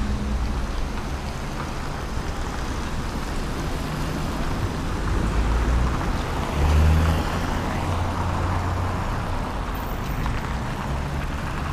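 A tram rumbles past and pulls away.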